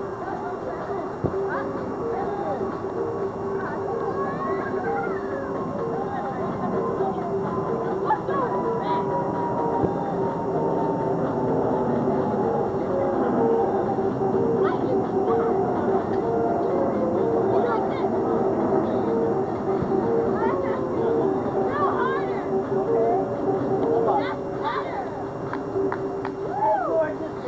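A group of adults chat and laugh nearby outdoors.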